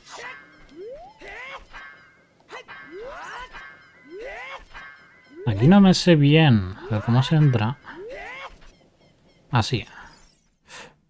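A small fairy chirps with quick rising calls, again and again.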